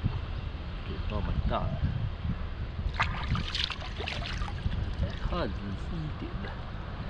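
Shallow river water flows gently over stones.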